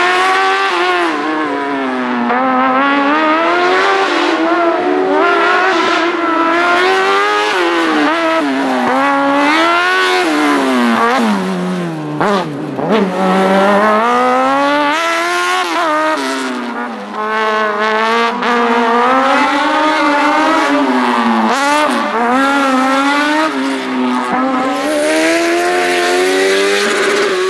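A racing car engine revs loudly, rising and falling in pitch as the car accelerates and brakes.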